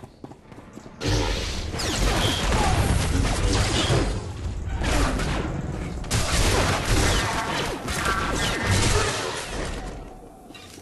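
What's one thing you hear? Blows and blasts crackle during combat.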